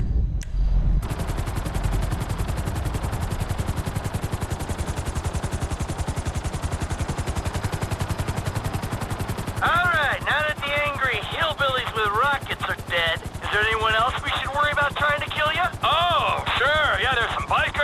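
A helicopter's rotor thumps rapidly and steadily.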